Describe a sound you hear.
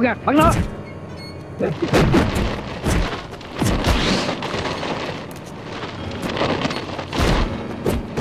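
Blows and swooshes of weapons strike repeatedly.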